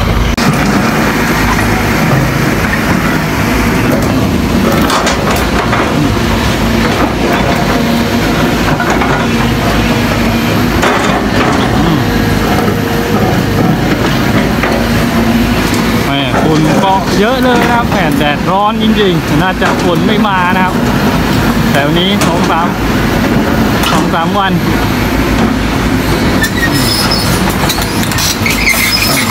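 A diesel excavator engine works under load.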